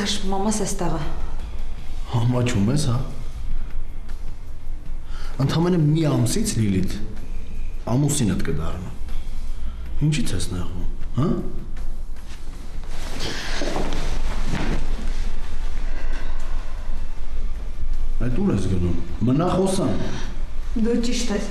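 A man speaks in a low, tense voice, close by.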